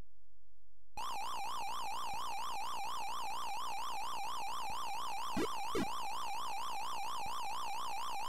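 An electronic arcade siren wails steadily up and down.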